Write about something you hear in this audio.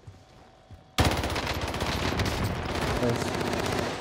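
A gun fires in rapid bursts of loud shots.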